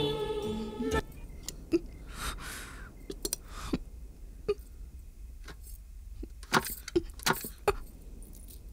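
A gramophone clicks and knocks as it is handled.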